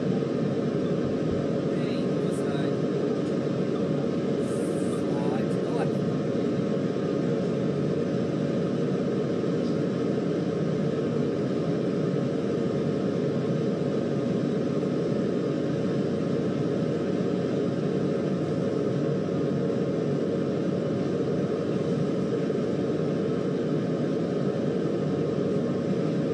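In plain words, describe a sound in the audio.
A train engine drones steadily.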